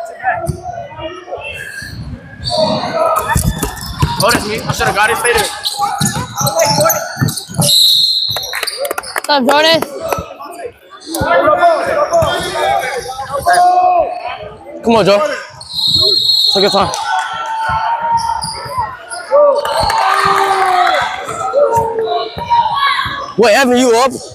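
Young players and spectators shout and chatter, echoing around the gym.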